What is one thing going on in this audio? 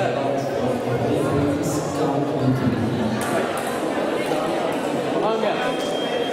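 Fencers' feet tap and shuffle on a metal strip.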